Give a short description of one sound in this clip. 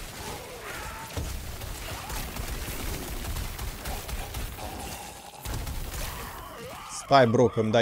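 Fiery spells whoosh and crackle in a video game.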